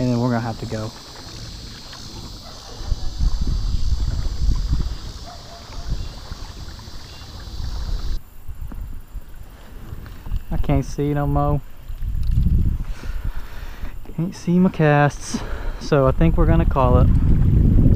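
A paddle dips and splashes gently in calm water.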